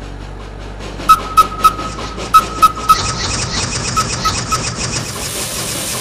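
A toy train chugs along with rhythmic puffs.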